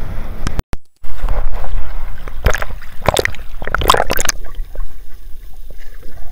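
Water sloshes and bubbles around a swimmer.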